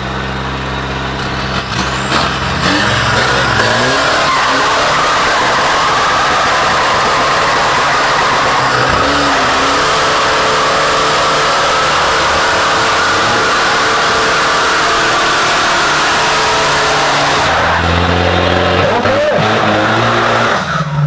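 An engine revs loudly and roars.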